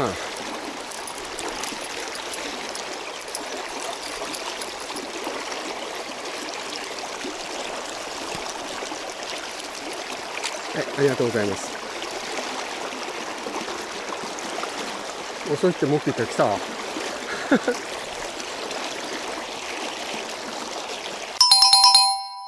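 A shallow river rushes and burbles steadily close by.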